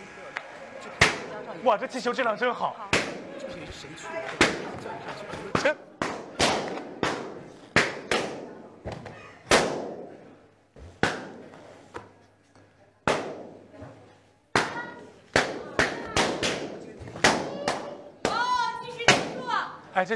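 Balloons pop loudly, one after another.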